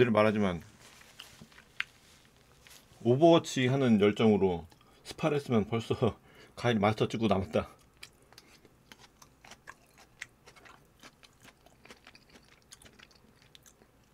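A young man chews and slurps food close to a microphone.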